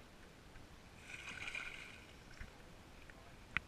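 A hooked fish thrashes and splashes at the water's surface.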